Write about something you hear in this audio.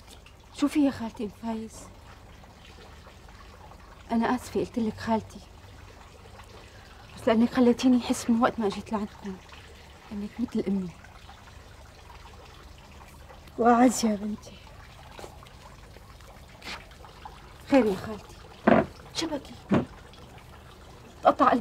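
An elderly woman speaks in reply nearby.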